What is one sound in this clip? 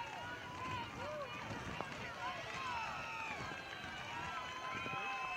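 A crowd of spectators cheers and calls out outdoors in the distance.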